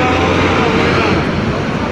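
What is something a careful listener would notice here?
A man talks into a handheld radio.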